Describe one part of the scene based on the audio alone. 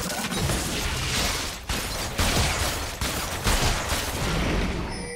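Spells crackle and blast in a video game fight.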